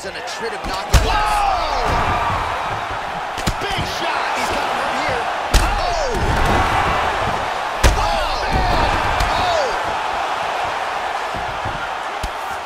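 A crowd roars in a large arena.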